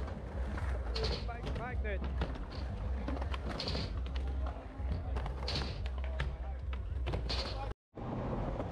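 Skateboard wheels roll and clack on concrete and a wooden ramp.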